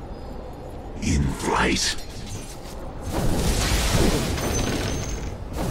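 Spell effects whoosh and crackle during a fight.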